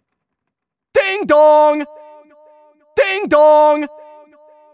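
A young man laughs and speaks mockingly, close by.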